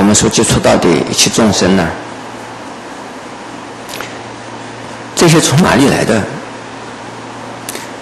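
An elderly man speaks slowly and calmly through a microphone, in short phrases with pauses.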